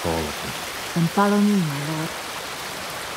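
A man speaks briefly in a deep, steady voice.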